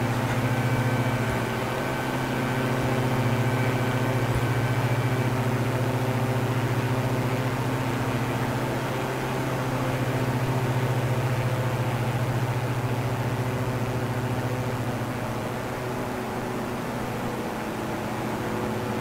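A twin propeller engine drones steadily.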